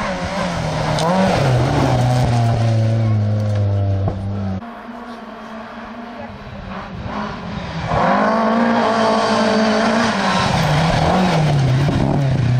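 A rally car engine shifts gears as the car approaches.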